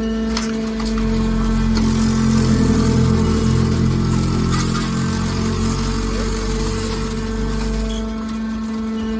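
A heavy metal press rumbles and groans as it pushes out a block of crushed scrap.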